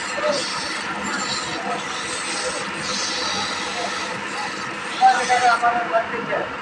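A chisel scrapes against wood spinning on a lathe.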